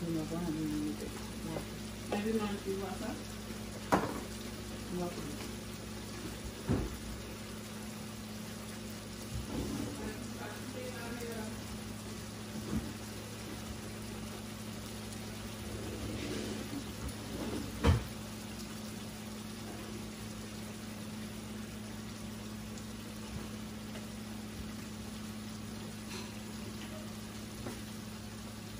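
Chicken sizzles and simmers in a pot.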